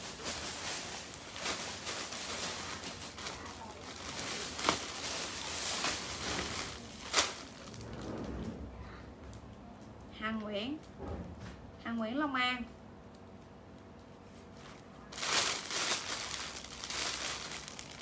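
Plastic bags rustle and crinkle close by.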